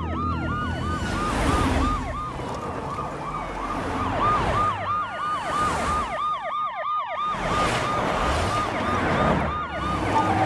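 A car engine roars and whooshes past at speed.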